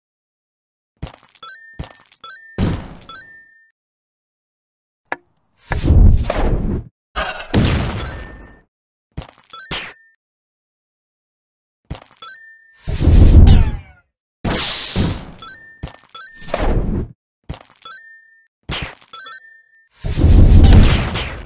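Magical blasts and impacts burst out in short flurries.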